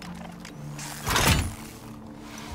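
A metal hatch clanks open.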